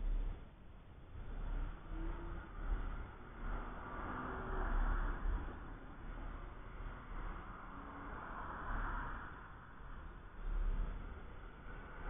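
Race car engines drone in the distance.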